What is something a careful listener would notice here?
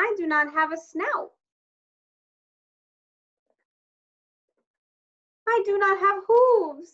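A woman reads aloud expressively, close to a microphone, with pauses.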